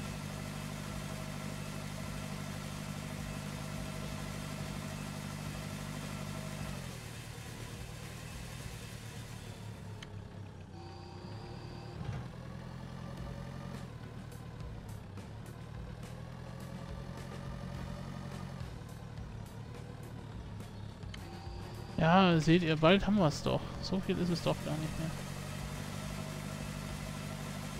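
A tractor engine hums steadily as the tractor drives across a field.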